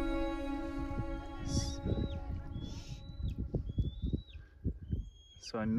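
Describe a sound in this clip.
Water laps gently against the shore rocks.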